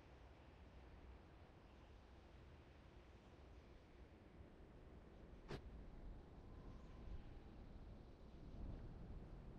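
Footsteps patter softly over dry grass.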